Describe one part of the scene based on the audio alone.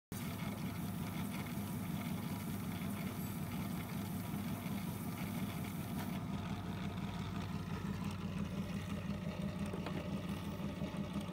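A spinning record crackles and hisses under the needle.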